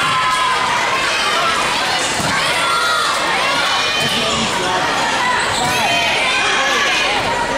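Young girls call out to each other during a volleyball game.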